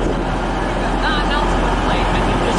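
Train wheels squeal briefly on the rails.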